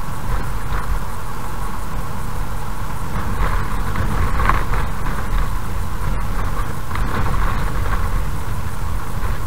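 A car engine hums steadily as the car drives slowly.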